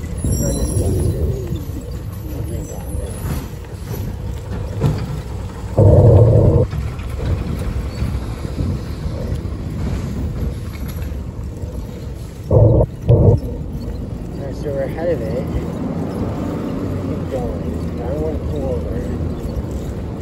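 Small hard wheels roll over rough asphalt with a steady, low rumble.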